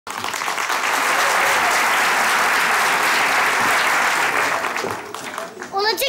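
A studio audience applauds and cheers loudly.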